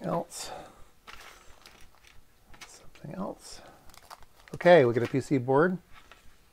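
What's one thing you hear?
A plastic bag crinkles and rustles in hands.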